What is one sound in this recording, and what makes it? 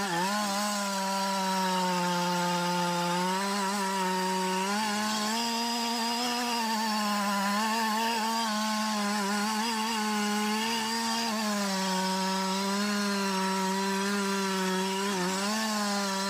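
A chainsaw engine drones steadily close by, its pitch rising and dipping as it cuts into wood.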